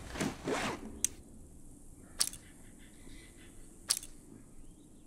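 Short menu clicks sound as options are switched.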